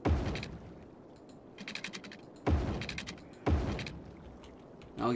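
A deep, soft thump sounds with a short clicking rattle.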